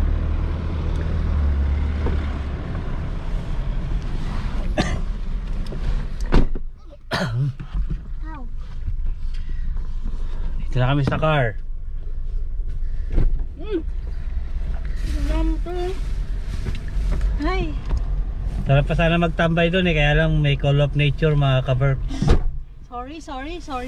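A car engine rumbles low and steady while driving.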